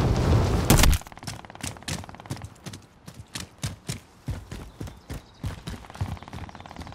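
Footsteps thud quickly on hard ground while running.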